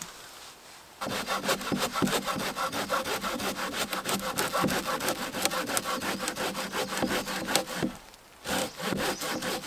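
A hand saw rasps quickly back and forth through a log.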